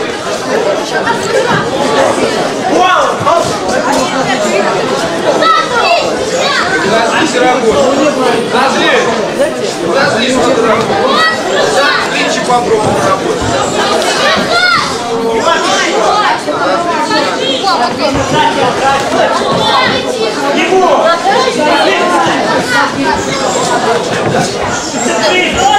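A crowd shouts and cheers throughout, echoing in an indoor hall.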